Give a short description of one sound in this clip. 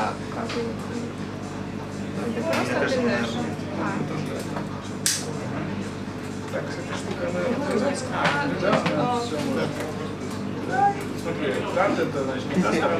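Several people talk at once in a crowded, noisy room.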